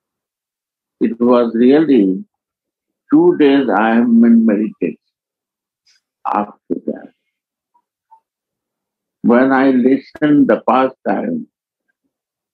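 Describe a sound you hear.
An elderly man speaks slowly and calmly through a microphone, with long pauses.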